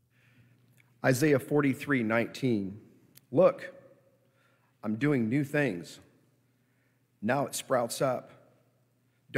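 A man speaks calmly through a microphone in a large echoing hall, reading out.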